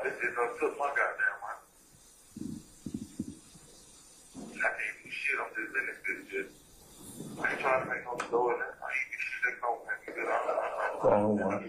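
A man speaks calmly into a microphone, with short pauses.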